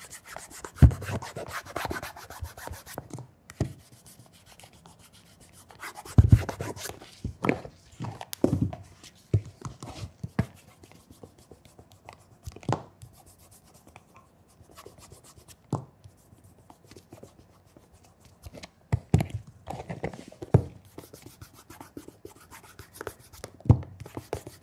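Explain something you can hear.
A leather shoe knocks softly on a hard surface.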